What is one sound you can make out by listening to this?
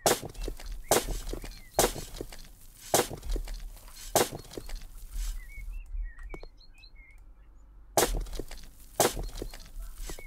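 A shovel digs into soil with sharp scraping thuds.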